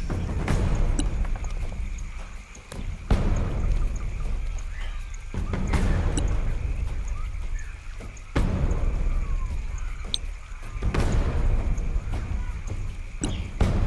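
Soft interface clicks sound now and then.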